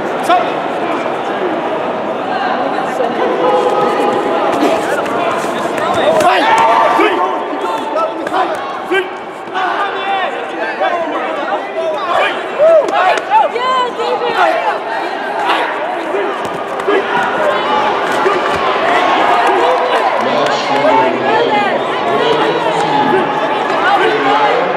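A crowd chatters and calls out throughout, echoing in a large hall.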